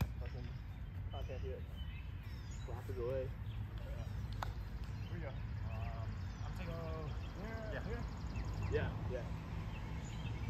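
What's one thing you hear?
Young men call out to each other outdoors at a distance.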